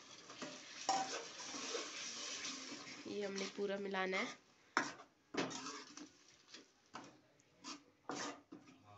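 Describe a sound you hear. A metal spoon scrapes and knocks against a pan.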